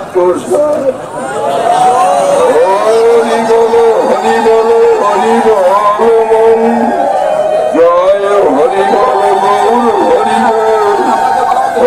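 An elderly man chants loudly into a microphone through a loudspeaker.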